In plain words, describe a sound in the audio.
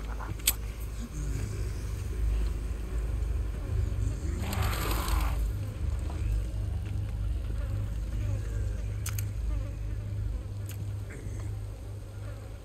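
Footsteps crunch on stone and leaves.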